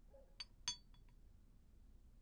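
China cups clink sharply against saucers.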